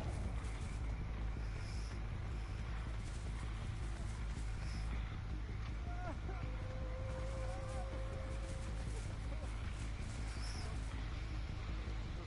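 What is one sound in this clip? Footsteps tread steadily through grass and leaves.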